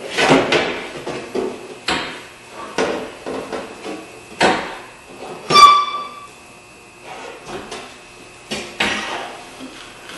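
Knocks and clicks sound as a car door panel is worked on.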